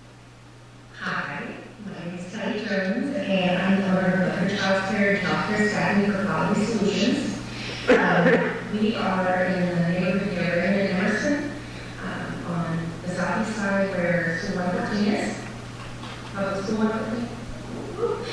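A woman speaks steadily into a microphone.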